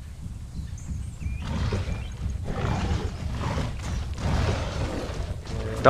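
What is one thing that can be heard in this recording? Heavy footsteps of a large creature thud on sand.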